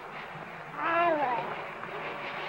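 A small child squeals with delight close by.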